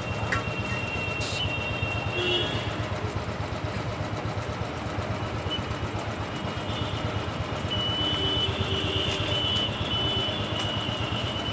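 A motorcycle engine idles with a low steady rumble.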